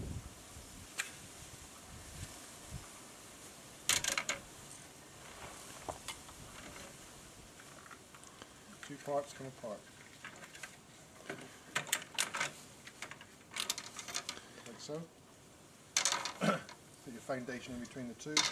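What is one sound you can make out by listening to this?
Plastic hive frames clatter and knock as they are handled.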